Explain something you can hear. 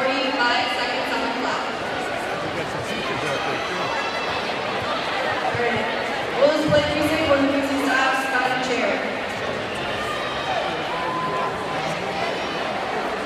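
Young people cheer and shout loudly.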